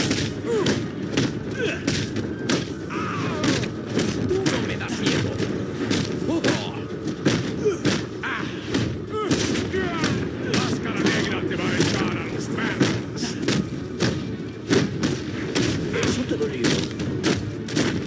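Men grunt and groan as they are struck.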